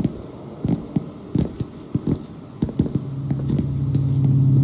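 Footsteps thud on stone stairs.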